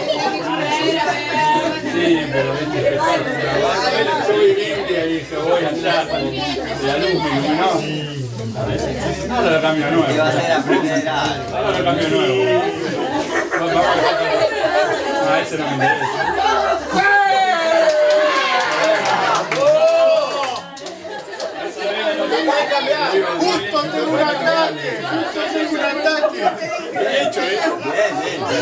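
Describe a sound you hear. A young man talks.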